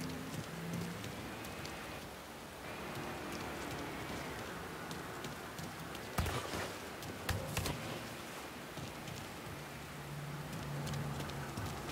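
Footsteps run quickly across a hard surface.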